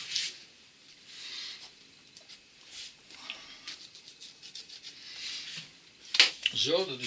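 A hand smears thick paste across a board with a soft swishing.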